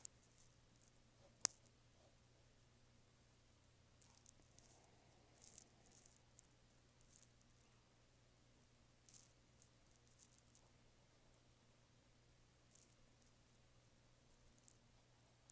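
A pencil scratches and shades softly on paper, close by.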